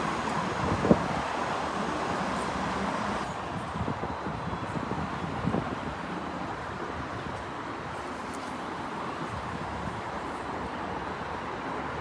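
A train rumbles steadily along the tracks nearby.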